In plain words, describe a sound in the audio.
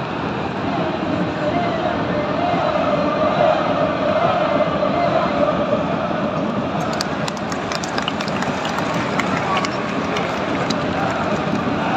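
A large stadium crowd roars and chants loudly all around.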